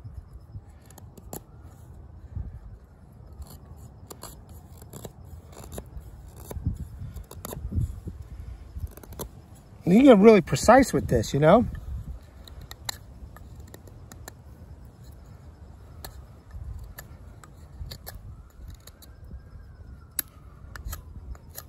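A knife whittles wood with short scraping cuts.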